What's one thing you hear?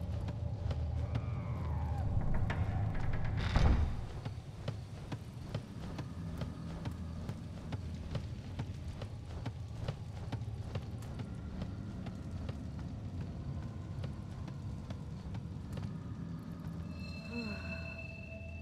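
Footsteps tap across a wooden floor.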